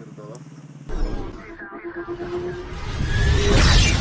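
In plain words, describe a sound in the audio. A whooshing musical sound rises.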